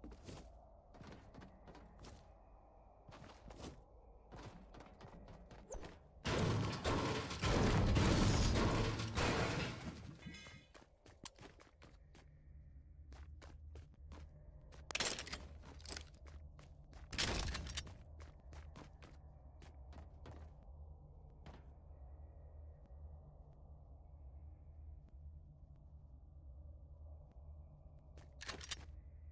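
Footsteps clatter on stairs and hard floors.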